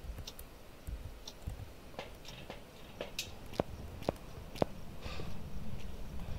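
A handheld electronic meter clicks and crackles.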